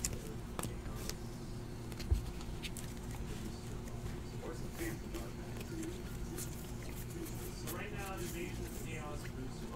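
Card edges tick and slap softly as cards are flicked.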